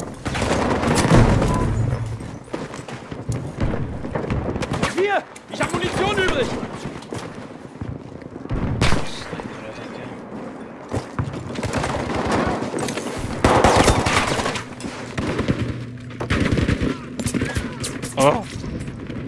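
Gunshots crack sharply in bursts.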